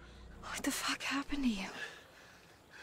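A young woman asks something in a shaken voice.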